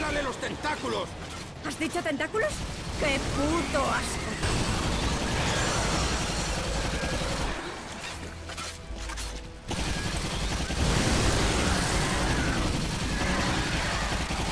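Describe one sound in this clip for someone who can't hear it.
Gunfire roars in rapid bursts.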